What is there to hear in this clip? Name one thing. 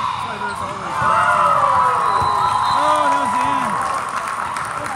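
A crowd of spectators and young female players cheer and shout in a large echoing hall.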